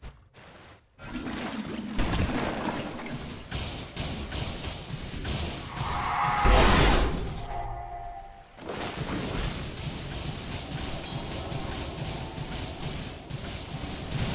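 Magic blasts and clashing battle sounds crackle and boom.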